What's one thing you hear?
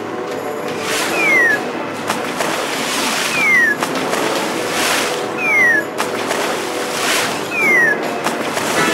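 Water splashes onto a fire with a short hiss, again and again.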